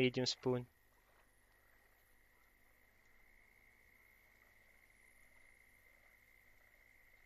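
A fishing reel winds in line with a soft steady whir.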